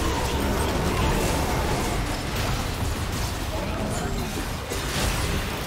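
Game characters' weapons clash and strike repeatedly.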